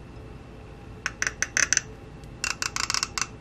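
A metal cap crackles as it is twisted open on a bottle.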